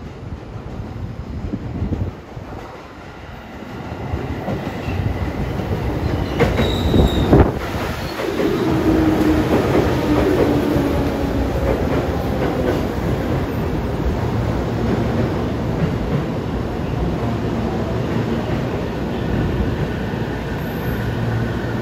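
A train rumbles into the station and slows to a stop.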